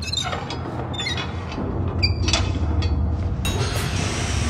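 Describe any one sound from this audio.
A metal valve wheel creaks and squeaks as it turns.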